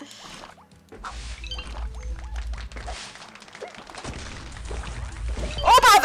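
Playful game sound effects blip and chirp.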